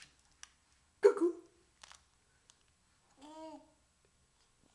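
A baby coos and babbles softly close by.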